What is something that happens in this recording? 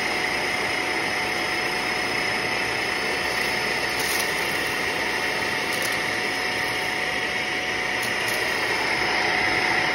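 A vacuum cleaner motor whirs steadily.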